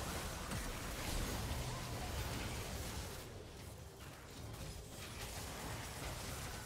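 Fighting sound effects clash and crackle from a video game.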